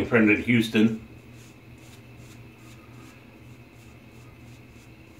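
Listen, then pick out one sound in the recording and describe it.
A razor scrapes across a lathered face.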